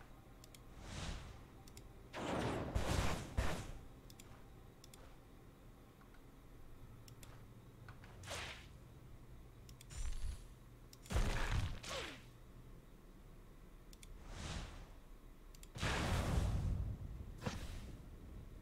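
Magic spells whoosh in short bursts.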